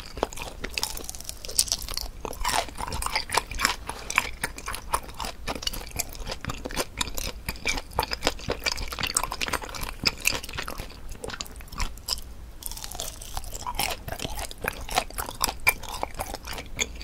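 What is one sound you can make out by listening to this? A woman chews soft, chewy food close to a microphone, with wet smacking sounds.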